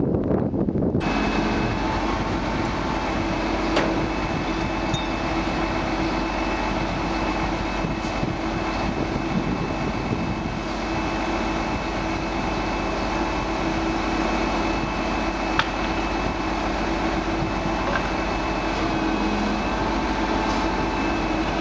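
A crane engine hums steadily nearby.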